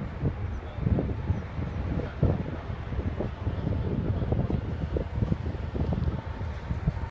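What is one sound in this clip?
Water rushes and splashes past a moving boat.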